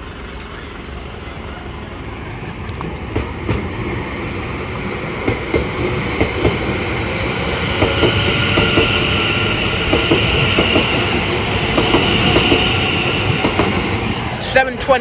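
An electric multiple-unit train rolls past close by.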